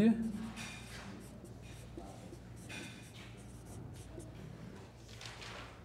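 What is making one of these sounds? A man speaks calmly, lecturing at a moderate distance.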